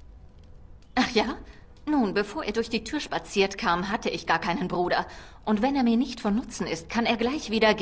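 A young woman speaks calmly and clearly, close up.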